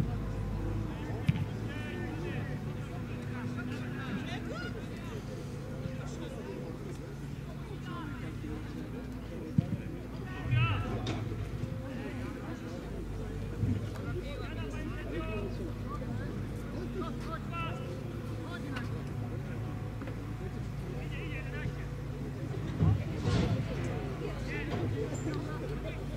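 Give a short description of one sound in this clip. A football thuds when kicked in the distance.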